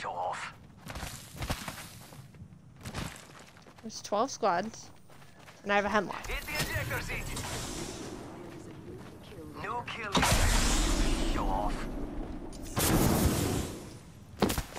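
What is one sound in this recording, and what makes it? Footsteps run quickly over dirt and gravel.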